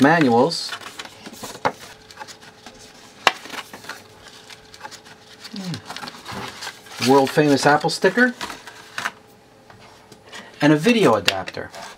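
Paper and cardboard rustle and crinkle close by.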